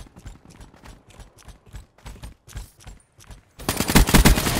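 Footsteps crunch quickly over rubble.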